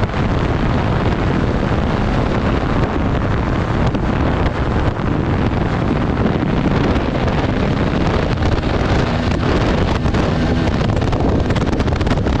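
Tyres crunch over a sandy dirt track.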